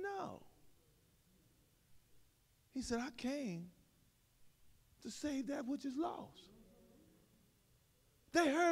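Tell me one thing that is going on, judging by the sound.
A man speaks with animation through a microphone in an echoing hall, pausing between phrases.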